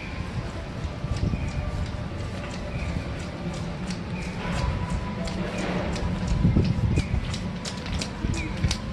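Footsteps tap on a wet pavement outdoors.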